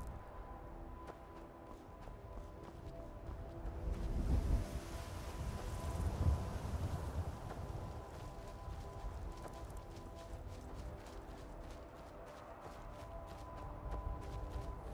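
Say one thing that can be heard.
Footsteps run quickly over grass and dry ground.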